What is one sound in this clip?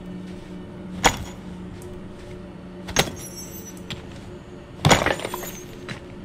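A tool strikes ice with sharp ringing blows.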